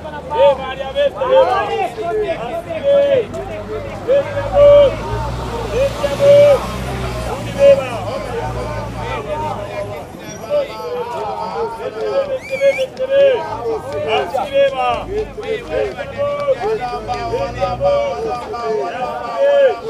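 A crowd of men and women shout and chatter loudly outdoors.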